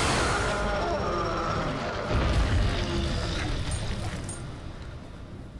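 Magic spells burst and crackle in quick succession.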